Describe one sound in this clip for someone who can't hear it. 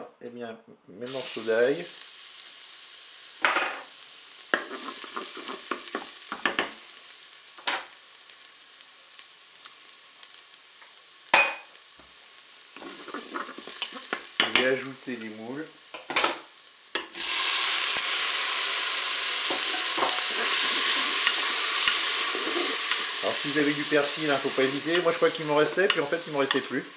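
Food sizzles loudly in hot oil.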